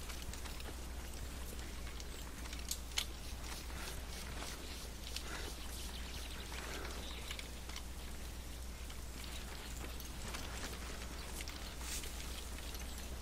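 Boots crunch in quick footsteps on hard ground.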